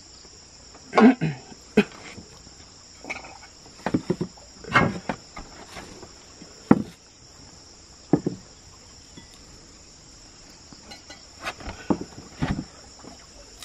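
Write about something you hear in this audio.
Ceramic bowls clink against a wooden floor.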